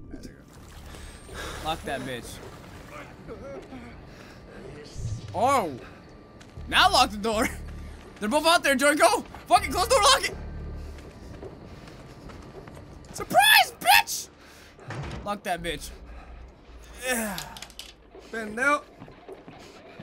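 Two young men talk and exclaim excitedly close to a microphone.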